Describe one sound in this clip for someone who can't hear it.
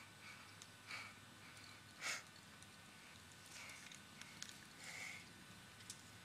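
A man breathes hard with effort.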